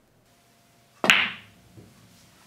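A cue strikes a billiard ball with a sharp click.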